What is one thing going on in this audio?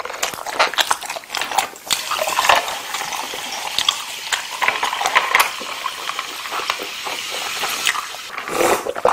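Sparkling water pours and fizzes into a metal cup.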